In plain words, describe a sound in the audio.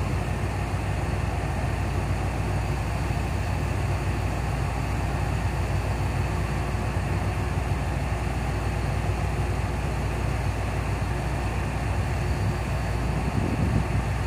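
Diesel train engines idle with a steady low rumble.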